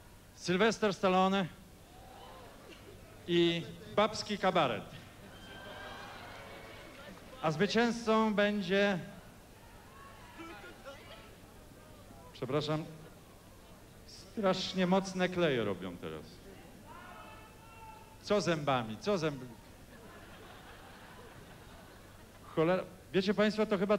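A middle-aged man speaks slowly and solemnly into a microphone, heard over a loudspeaker in a large hall.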